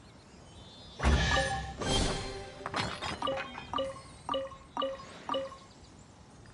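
A treasure chest opens with a burst of bright magical chimes.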